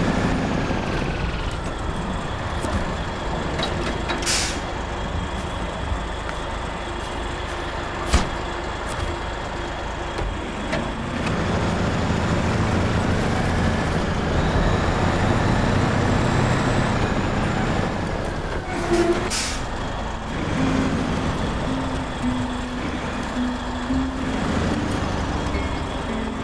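A heavy truck engine rumbles steadily and revs.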